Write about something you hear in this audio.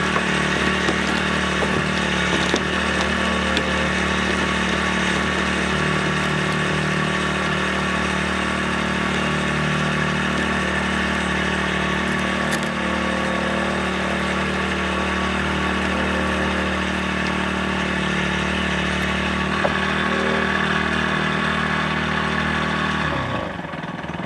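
A winch motor drones steadily close by, then stops.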